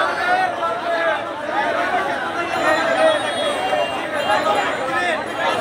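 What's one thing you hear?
A young man speaks loudly into a microphone amid the crowd.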